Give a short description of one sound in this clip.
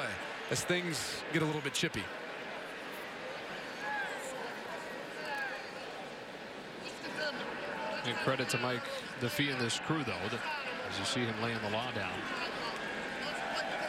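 A large crowd murmurs steadily in a big echoing stadium.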